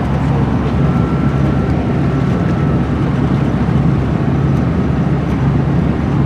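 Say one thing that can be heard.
A vehicle's engine hums steadily from inside as it drives along a road.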